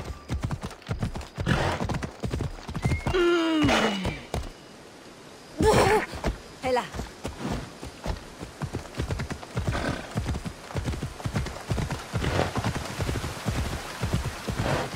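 Horse hooves thud rhythmically on rocky ground.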